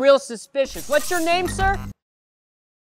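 A man speaks with animation, close up.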